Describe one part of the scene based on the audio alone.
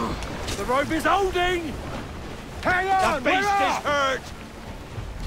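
A whale lets out long, wavering, moaning calls.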